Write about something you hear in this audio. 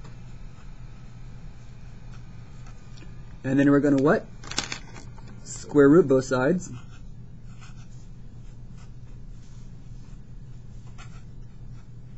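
A felt-tip marker squeaks and scratches on paper.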